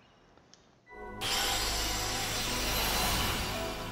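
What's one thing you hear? A loud shimmering whoosh bursts out.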